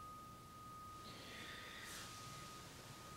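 Cloth robes rustle softly.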